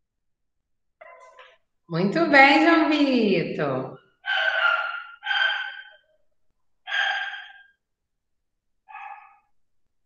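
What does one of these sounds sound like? A young woman speaks calmly and cheerfully into a microphone over an online call.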